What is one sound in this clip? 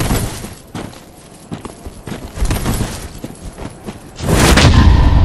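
Armored footsteps clink and thud on the ground.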